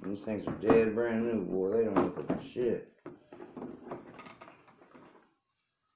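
Cardboard scrapes and rustles as a box is slid open.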